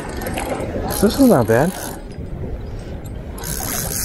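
A spinning reel is cranked.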